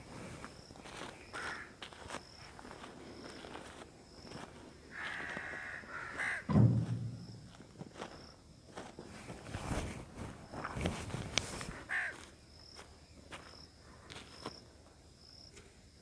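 Hands squelch and scrape through wet soil.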